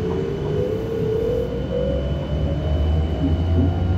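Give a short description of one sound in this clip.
A car drives past close by on a wet road.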